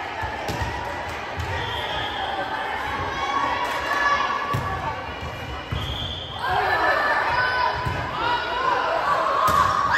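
A crowd of spectators murmurs and cheers throughout.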